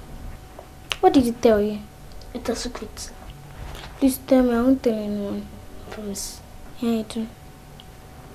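A young boy asks questions.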